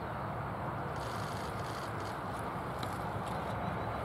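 A juvenile bald eagle flaps its wings on a branch.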